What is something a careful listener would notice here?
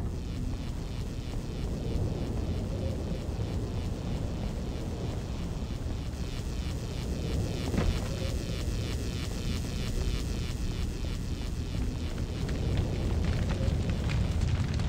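Footsteps thud quickly on hard ground.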